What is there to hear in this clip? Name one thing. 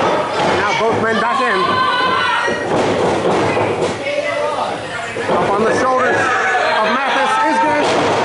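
A crowd of men and women shouts and cheers loudly in a large echoing hall.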